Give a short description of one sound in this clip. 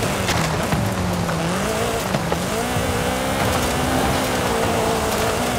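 Tyres skid and crunch over loose gravel.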